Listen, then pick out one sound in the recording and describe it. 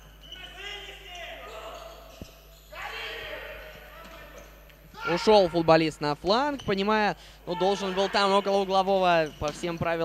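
A ball thuds as players kick it in an echoing hall.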